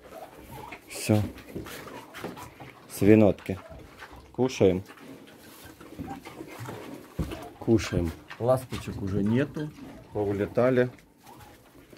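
A pig grunts and snorts close by.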